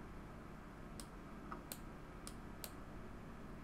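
Metal parts snap and crack apart.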